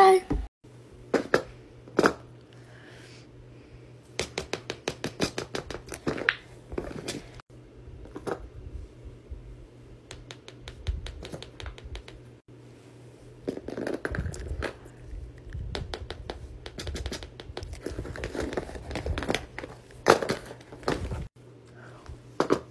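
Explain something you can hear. Toys thump and rustle as they are placed and moved on a board.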